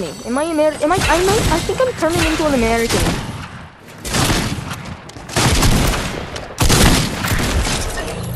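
Rapid gunshots ring out in bursts.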